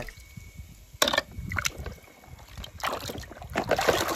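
Water sloshes and splashes as a hand stirs it.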